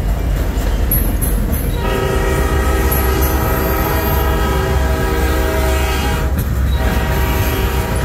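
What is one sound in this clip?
A freight train rolls past close by, its wheels clattering over steel rails.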